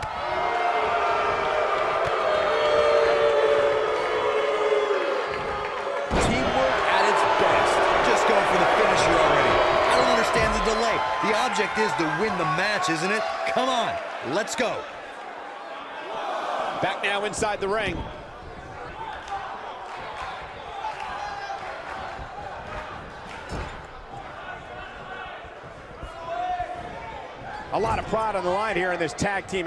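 A large crowd cheers loudly in a big arena.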